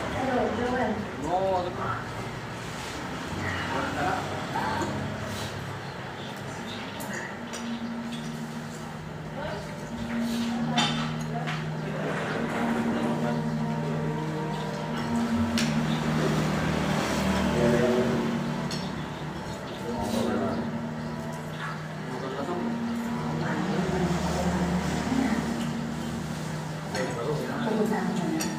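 Spoons clink and scrape against plates.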